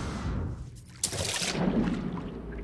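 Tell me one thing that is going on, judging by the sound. Water splashes as a diver plunges under the surface.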